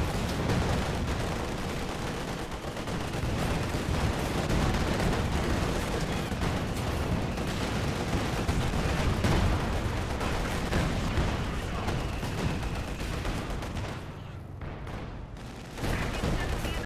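Tank cannons fire with heavy booms.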